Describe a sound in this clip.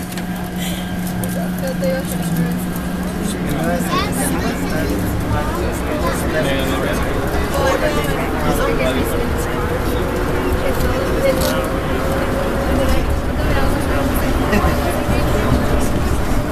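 A train rumbles along its track.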